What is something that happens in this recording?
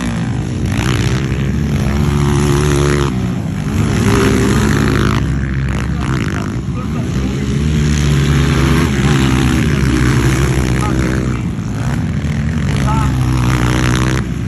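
Dirt bike engines rev and whine loudly, rising and falling in pitch.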